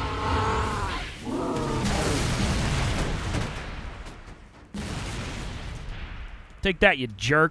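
Gunfire and explosions rumble in a game.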